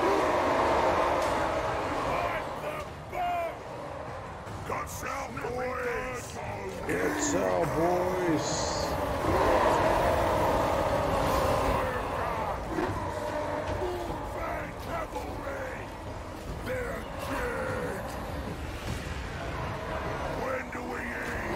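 Battle noise of clashing weapons and shouting soldiers rumbles on.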